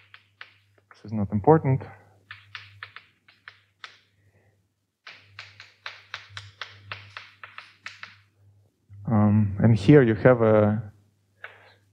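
A young man speaks calmly, close by.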